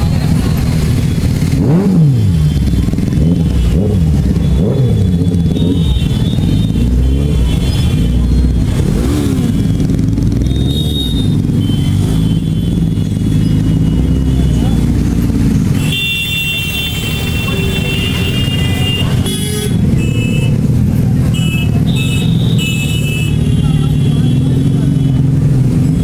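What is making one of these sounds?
Vehicle horns honk repeatedly nearby.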